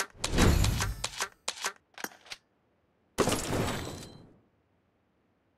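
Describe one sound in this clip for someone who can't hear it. A video game plays a dramatic whooshing sound effect.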